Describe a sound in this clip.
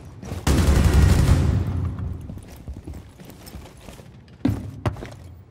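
A rifle fires loud single shots that boom and rumble.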